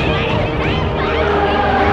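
Several women shout angrily up close.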